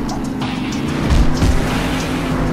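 A truck lands hard with a thud after a jump.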